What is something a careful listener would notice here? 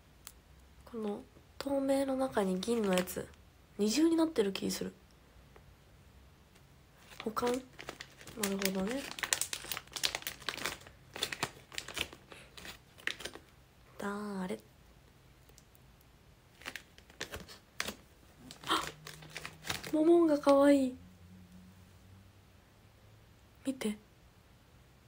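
A young woman talks softly and cheerfully close to a microphone.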